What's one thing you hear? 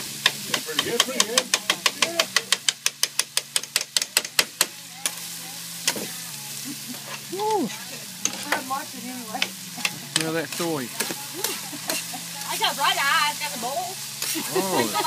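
A metal spatula clicks and scrapes rapidly on a hot griddle.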